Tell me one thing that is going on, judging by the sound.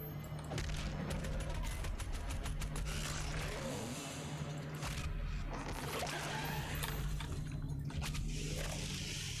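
Monsters roar and growl.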